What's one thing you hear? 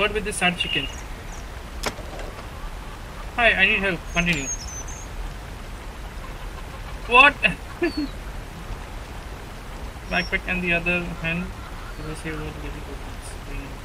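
A man talks casually and with animation close to a microphone, in short bursts.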